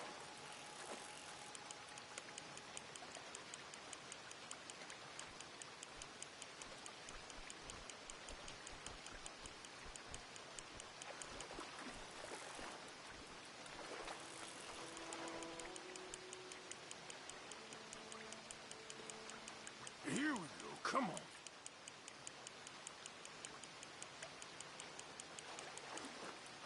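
A fishing reel clicks rapidly as it winds in line.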